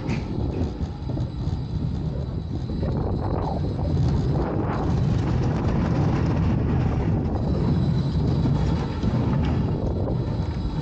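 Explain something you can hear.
A ride car rumbles and rattles along a track.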